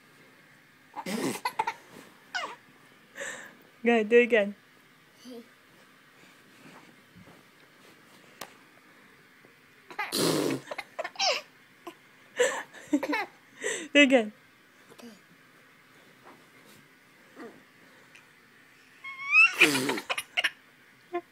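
A baby laughs and squeals up close.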